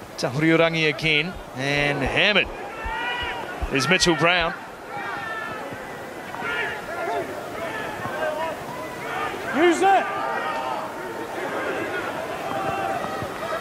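A stadium crowd cheers and shouts in the distance.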